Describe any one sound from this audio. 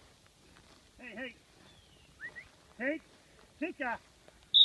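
A deer barks sharply several times.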